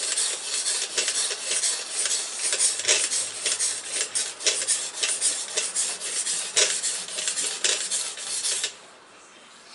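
A sharpening stone scrapes rapidly back and forth along a knife blade.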